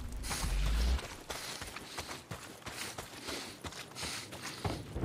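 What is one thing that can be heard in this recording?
Footsteps crunch over dry grass and debris.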